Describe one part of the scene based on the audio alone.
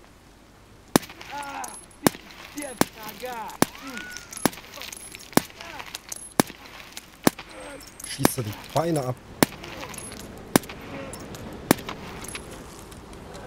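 Spent shell casings tinkle onto pavement.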